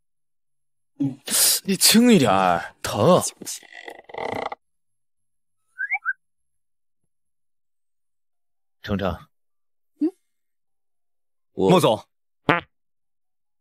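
A young man speaks close by, in a puzzled, complaining tone.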